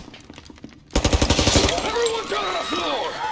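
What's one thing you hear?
A gun fires a rapid burst of shots in a large echoing hall.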